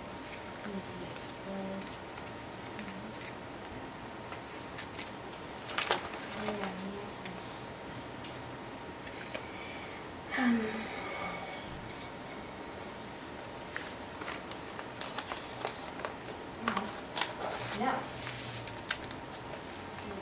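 Paper cards rustle and slide against plastic sleeves.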